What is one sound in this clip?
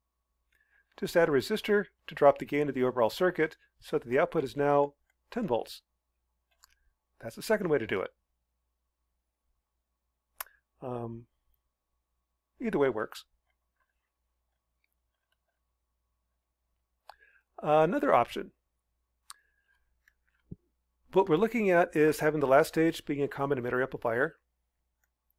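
A man explains calmly into a close microphone, in short bursts with pauses.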